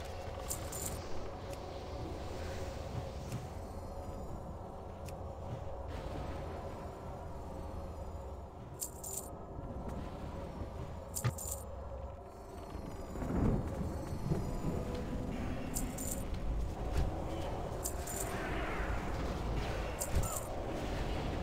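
Sharp chimes ring out now and then.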